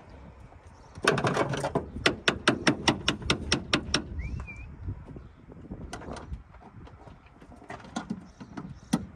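Metal tools click and clank against an engine.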